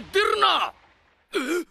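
A man shouts in surprise, close by.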